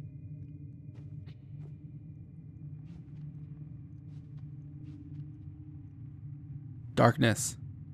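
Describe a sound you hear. Small footsteps tap softly on a hard floor.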